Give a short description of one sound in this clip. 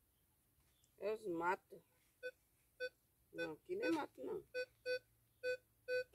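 A metal detector beeps in short repeated tones.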